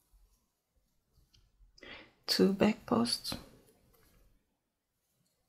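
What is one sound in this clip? Yarn rustles softly as a hook pulls it through stitches.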